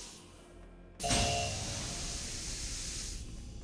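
Gas hisses loudly into a small room.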